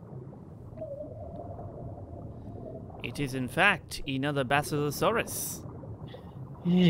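Deep water rumbles in a low, steady murmur.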